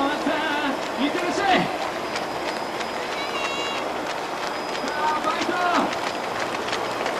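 Running feet patter on a paved road.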